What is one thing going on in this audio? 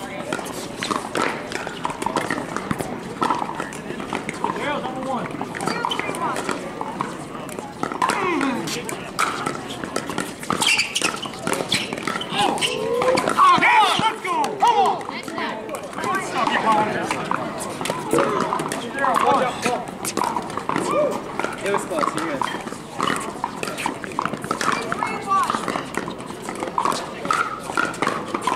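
Paddles pop sharply against a plastic ball, again and again.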